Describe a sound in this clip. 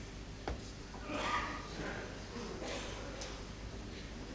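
A man speaks briefly and quietly in a large hall.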